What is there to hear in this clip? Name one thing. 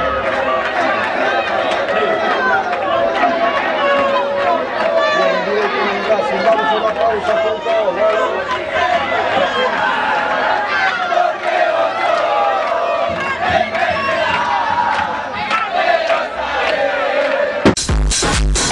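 A large crowd chants and shouts loudly outdoors.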